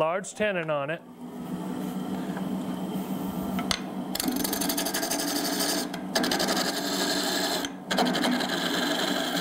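A wood lathe spins with a steady hum.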